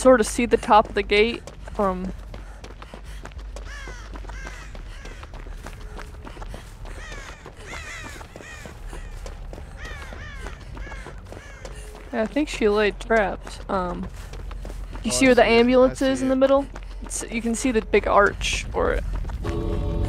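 Quick footsteps rustle through tall grass.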